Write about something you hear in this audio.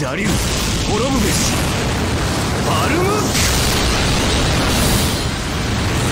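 A powerful magical blast roars with a deep, steady rumble.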